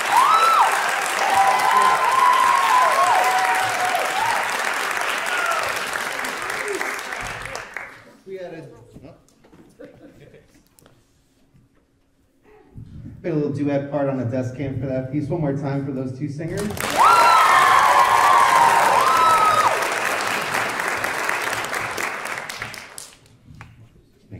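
A large mixed choir sings together in a reverberant hall.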